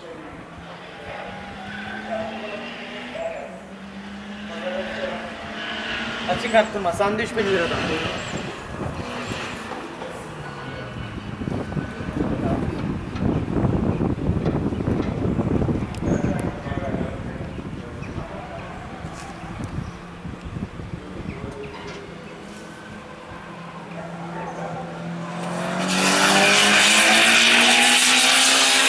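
A small car's engine revs hard as it races around a track.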